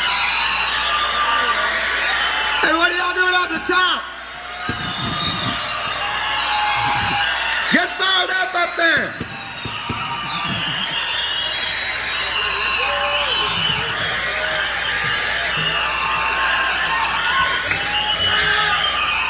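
A rock band plays loudly.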